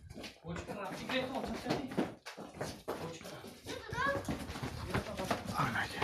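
Hooves clatter on a hard concrete floor.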